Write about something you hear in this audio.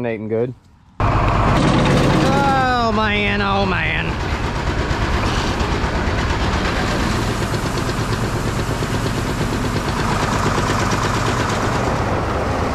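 Grain pours and hisses steadily.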